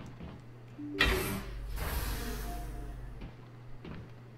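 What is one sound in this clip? A heavy metal door slides open with a loud rushing hiss and rumble.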